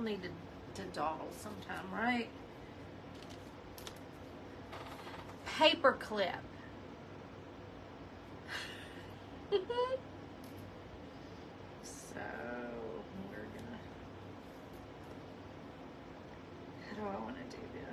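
A middle-aged woman talks calmly and close to a microphone.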